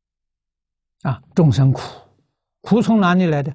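An elderly man speaks calmly, as in a lecture, through a clip-on microphone.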